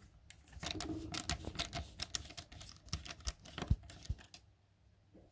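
A screwdriver scrapes and clicks against a metal screw.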